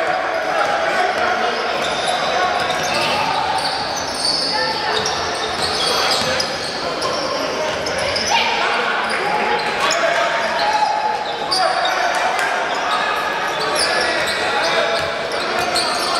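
A basketball bounces on a wooden floor as a player dribbles.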